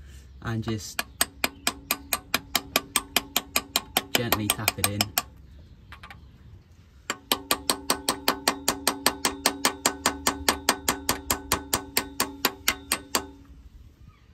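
An air impact wrench rattles in rapid bursts.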